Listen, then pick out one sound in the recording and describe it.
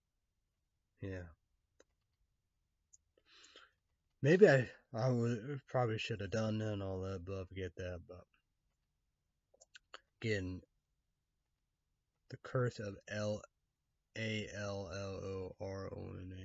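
A young man talks calmly and close up, with pauses.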